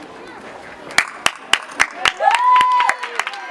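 A person claps hands nearby.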